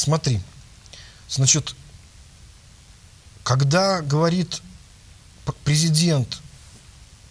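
A man speaks with animation into a microphone, close by, in short bursts.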